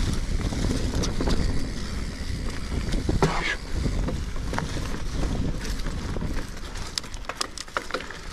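Bicycle tyres roll and crunch over dry leaves on a dirt trail.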